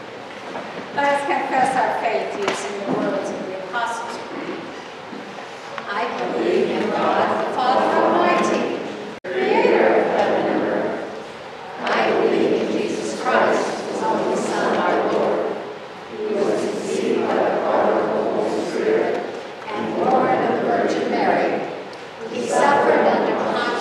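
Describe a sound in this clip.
An elderly man reads aloud in a calm voice in an echoing hall.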